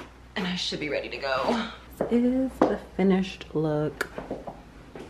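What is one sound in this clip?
A young woman speaks close by, casually and with animation.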